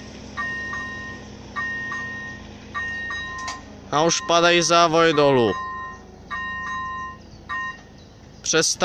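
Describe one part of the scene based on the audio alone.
A level crossing bell rings in repeated bursts.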